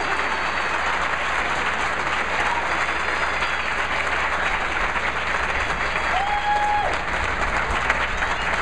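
A large crowd chatters and murmurs in a big echoing space.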